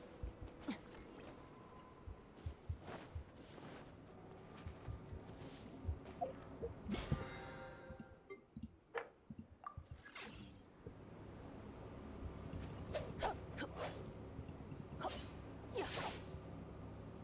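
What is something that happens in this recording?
A sword swishes sharply through the air.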